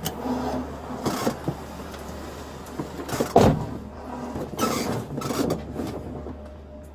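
A seat belt strap rustles and its buckle clicks shut.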